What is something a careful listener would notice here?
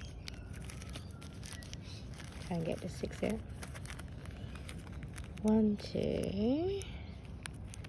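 A plastic bag crinkles in a hand.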